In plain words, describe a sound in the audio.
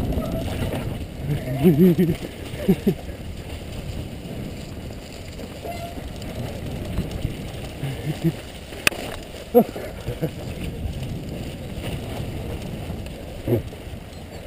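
Bicycle tyres roll and rattle over a bumpy dirt track.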